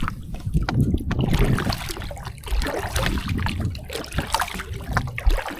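A wet nylon fishing net rustles as it is pulled in by hand.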